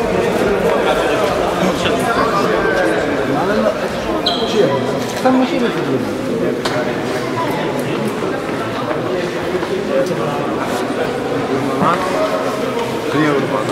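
A crowd of men talks and shouts loudly in an echoing indoor hall.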